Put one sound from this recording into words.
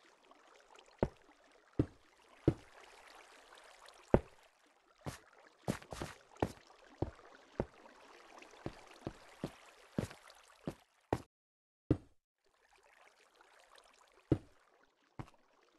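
Blocks clack sharply as they are placed one after another in an uneven series.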